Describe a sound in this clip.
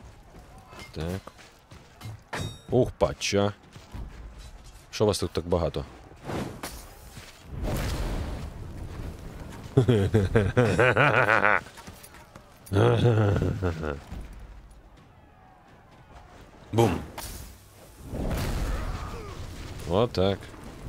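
Heavy weapons strike and clash.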